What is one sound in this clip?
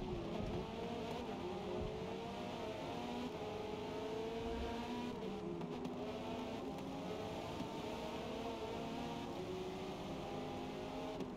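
A racing car engine roars steadily, its pitch rising and falling as it shifts gears.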